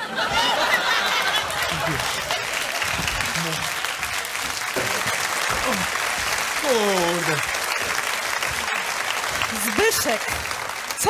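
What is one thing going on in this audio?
A large audience laughs.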